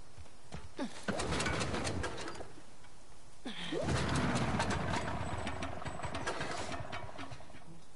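A small engine sputters and turns over as its starter is pulled.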